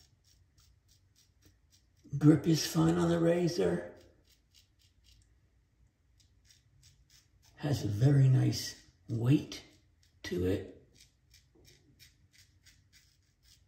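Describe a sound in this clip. A razor scrapes softly over stubble in short strokes.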